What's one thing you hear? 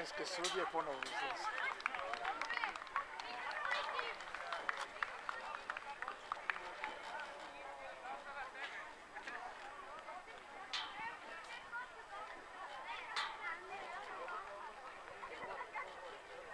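Young girls shout and call to each other across an outdoor field.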